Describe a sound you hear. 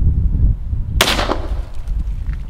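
A rifle fires once with a sharp crack.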